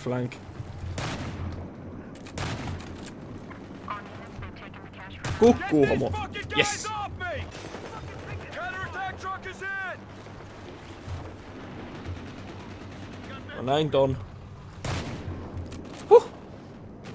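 A shotgun fires loud single blasts.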